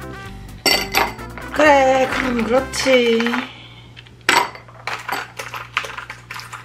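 Ice cubes clink against the inside of a glass.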